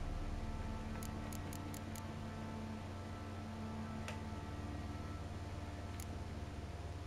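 Short, soft menu clicks tick a few times.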